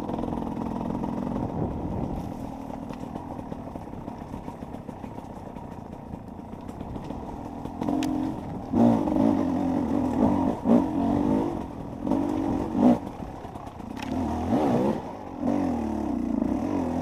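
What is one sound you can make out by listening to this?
A dirt bike engine revs and sputters up a steep trail.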